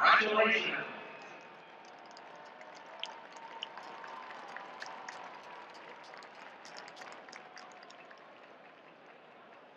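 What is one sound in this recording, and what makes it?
A large stadium crowd murmurs and chatters in the open air.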